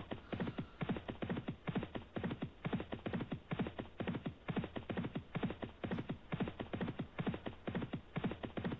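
Horses' hooves drum rapidly on turf in a fast, steady gallop.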